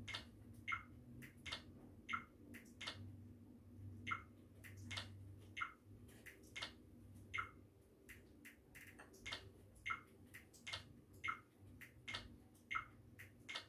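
Short electronic menu sounds chirp from a television as selections change.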